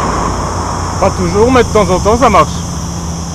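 A man speaks up close, loud and animated.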